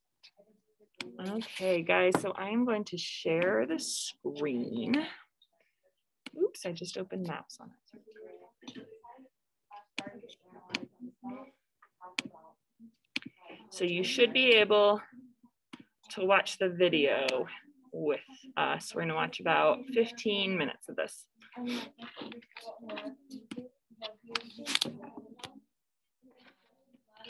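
A young woman talks calmly close to a computer microphone.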